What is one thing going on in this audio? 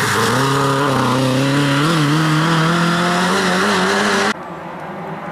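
A rally car engine revs hard and roars past.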